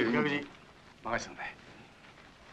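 A middle-aged man speaks up close.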